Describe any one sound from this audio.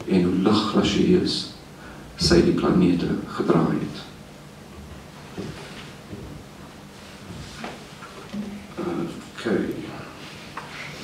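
A man reads aloud slowly into a microphone, with long pauses.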